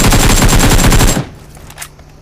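Rapid automatic gunfire rattles loudly and close.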